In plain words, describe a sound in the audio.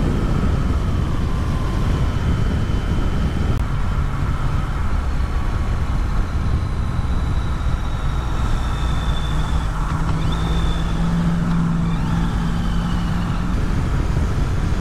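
Wind rushes and roars steadily past a moving motorcycle.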